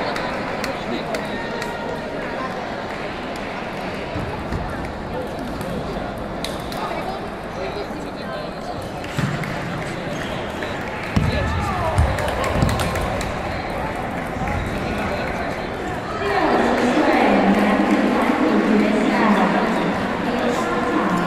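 Table tennis balls click against paddles and tables in a large echoing hall.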